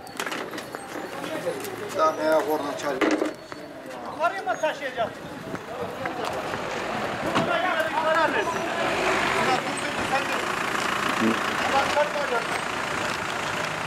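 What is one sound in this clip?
Men talk in low voices nearby, outdoors.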